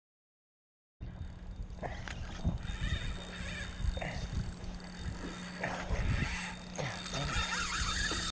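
Water laps gently below a pier.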